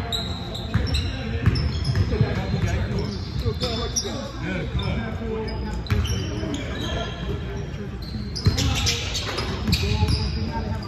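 Basketballs bounce on a wooden floor in a large echoing hall.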